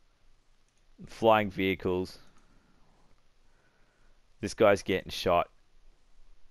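A man speaks gruffly in short bursts.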